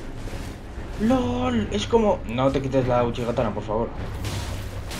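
A young man speaks with animation close to a headset microphone.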